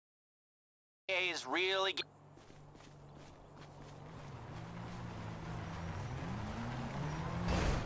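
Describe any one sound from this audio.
Footsteps run across grass and dirt.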